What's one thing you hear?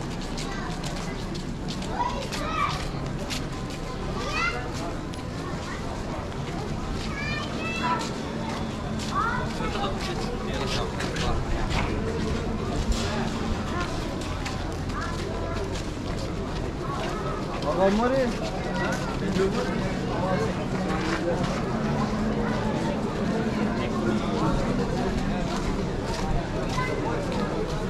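A crowd of people murmur and talk outdoors.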